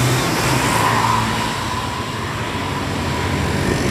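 A bus passes by in the distance.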